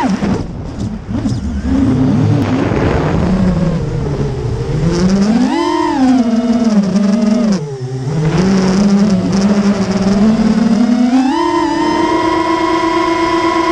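A small electric motor whines close by, its pitch rising and falling.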